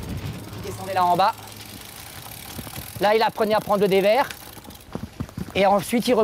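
A bicycle rolls past over a dirt trail.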